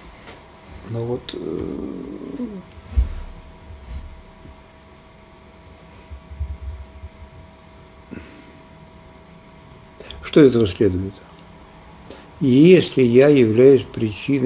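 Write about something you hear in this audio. An elderly man speaks slowly and haltingly into a nearby microphone, with long pauses.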